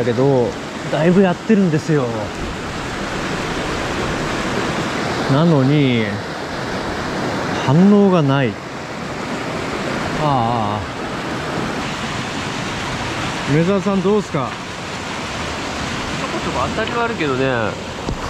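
A river rushes and splashes over rocks nearby.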